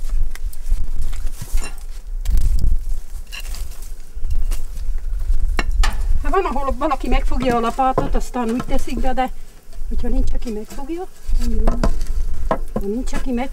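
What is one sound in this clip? A wooden peel scrapes and knocks against embers in an oven.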